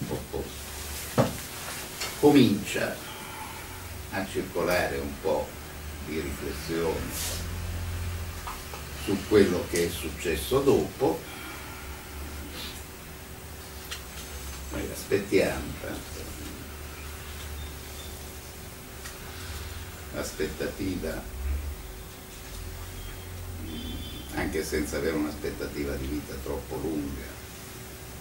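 A middle-aged man speaks calmly, in bursts with pauses.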